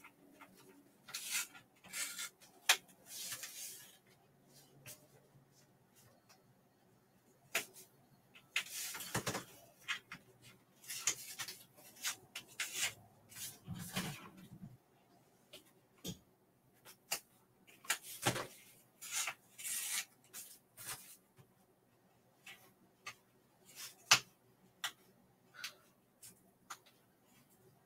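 A craft knife scrapes and scratches on foam board in short bursts.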